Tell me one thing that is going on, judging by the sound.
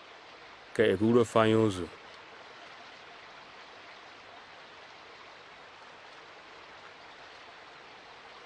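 Water rushes and burbles over rocks in a stream.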